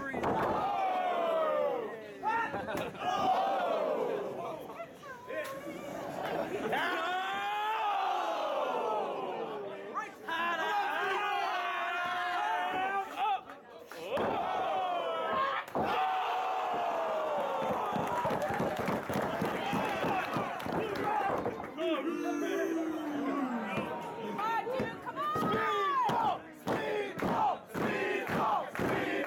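A large crowd cheers and chants loudly in an echoing hall.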